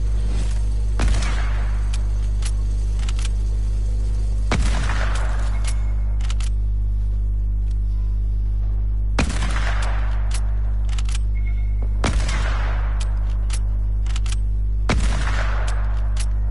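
A rifle fires loud single shots that echo away.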